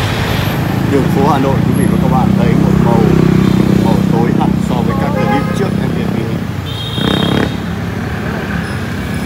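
Motorbikes hum past on a street.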